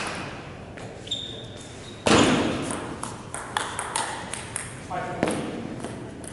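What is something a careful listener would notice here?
A table tennis ball clicks back and forth off paddles and the table.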